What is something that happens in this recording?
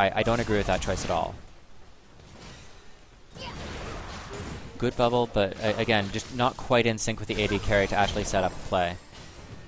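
Magic blasts and clashing weapons sound in a busy fight.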